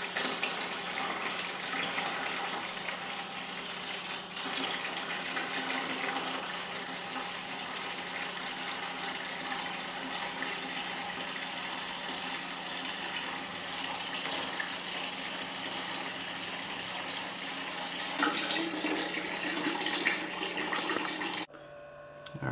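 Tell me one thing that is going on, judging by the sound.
A thin stream of water pours and splashes into a plastic bucket.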